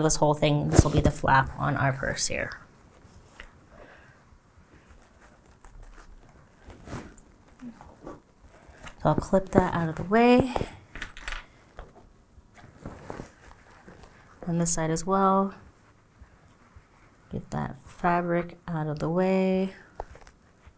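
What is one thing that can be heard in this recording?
Fabric rustles softly.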